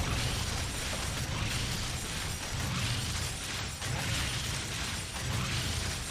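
Game weapons and spell effects clash in a fast battle.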